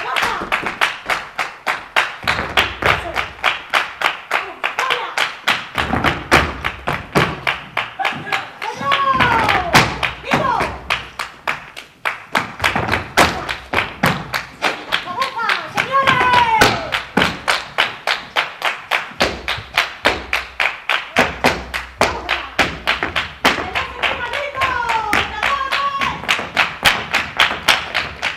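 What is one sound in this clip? A woman claps her hands in a fast, steady rhythm.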